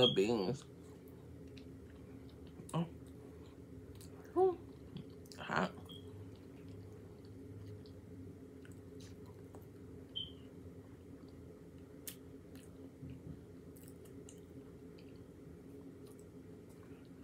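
A woman chews food close to a microphone.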